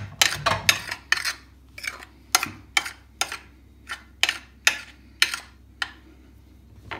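A metal spoon clinks and scrapes against a glass plate.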